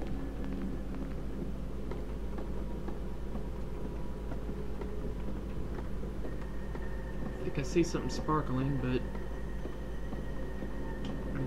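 Footsteps shuffle softly across a floor.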